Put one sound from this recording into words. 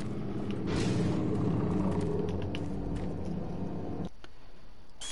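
A low mechanical hum drones steadily, then cuts off.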